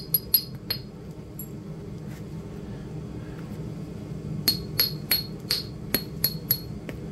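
A knife blade scrapes and taps against a hard shell.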